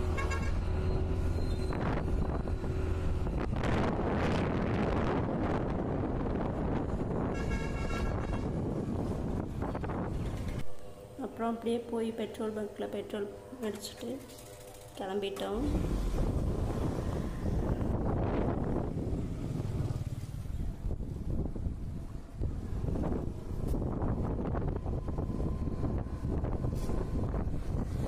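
Wind roars past as a motorcycle rides along.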